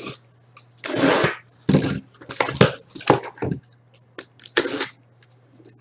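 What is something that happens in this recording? Cardboard flaps rustle and scrape as a box is opened.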